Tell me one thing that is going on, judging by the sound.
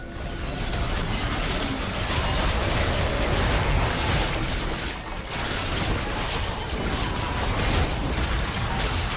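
Magic spells burst and crackle in a fierce fight.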